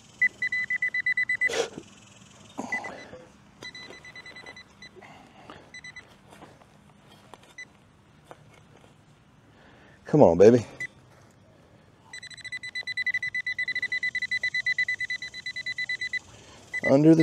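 A metal detector beeps with a steady, pulsing high tone.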